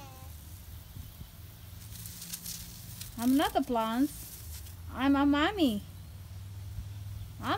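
Water sprays from a garden hose.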